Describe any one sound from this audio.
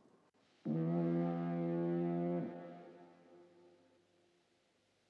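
A ship's horn blows a long, deep blast far out at sea and fades away.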